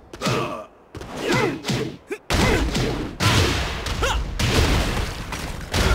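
Fighters trade punches and kicks with heavy thuds.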